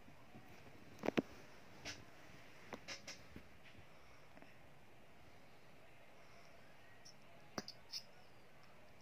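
A toddler sucks softly on a bottle with small wet clicks.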